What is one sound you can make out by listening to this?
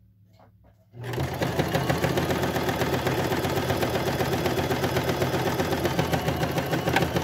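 A sewing machine runs quickly with a rapid, steady clatter.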